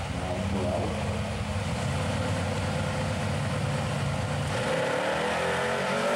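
A car engine roars loudly and rumbles at high revs.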